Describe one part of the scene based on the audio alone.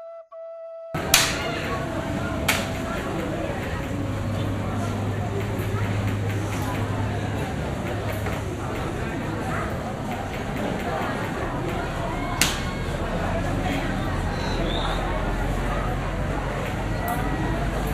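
A crowd murmurs and chatters in a large open space.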